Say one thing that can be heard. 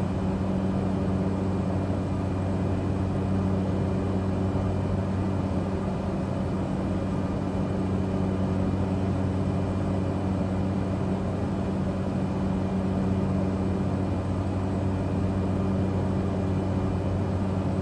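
A small plane's engine drones steadily inside the cockpit.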